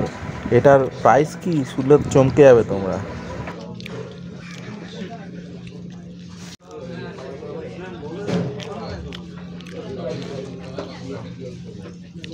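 Fingers squish and mix rice on a plate.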